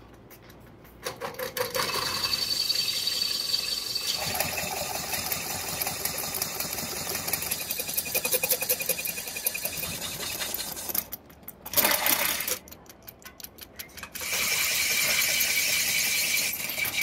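A metal-working machine whirs steadily, with metal scraping against metal.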